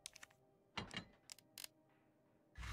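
Soft clicks sound from a game menu.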